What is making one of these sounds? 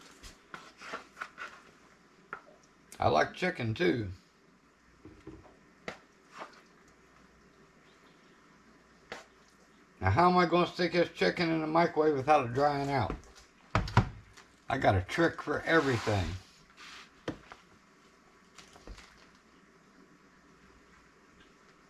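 A wooden spoon scrapes and taps food out of a bowl.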